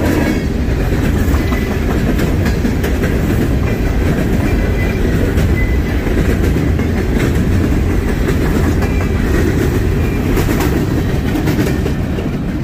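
Steel wheels squeal and screech against the rails.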